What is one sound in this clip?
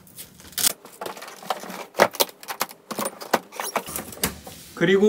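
A suitcase zipper rattles and clicks.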